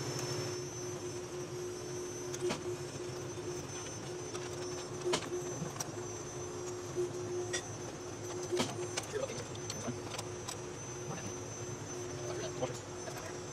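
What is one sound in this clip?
Metal bolts click and clink as they are handled.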